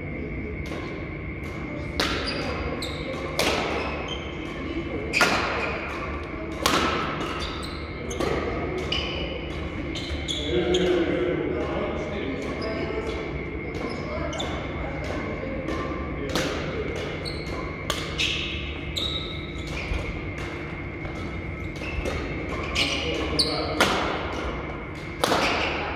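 Shoes squeak and patter on a hard court floor.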